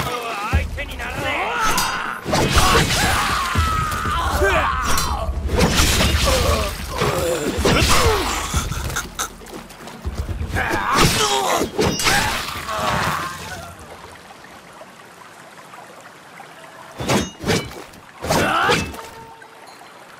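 A river rushes steadily.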